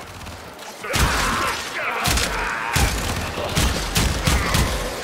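Guns fire in repeated loud blasts.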